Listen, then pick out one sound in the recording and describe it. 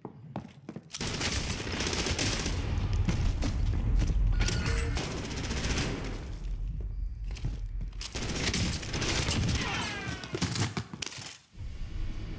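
Gunshots fire in rapid bursts with a loud rumble.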